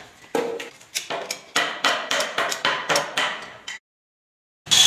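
A door lever handle clicks as the latch snaps back.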